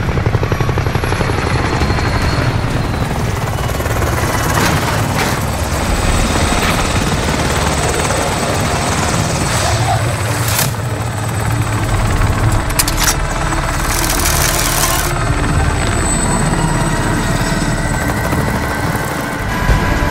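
A helicopter's rotor thumps and roars close overhead.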